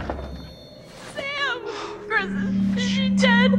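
A young woman shouts in panic.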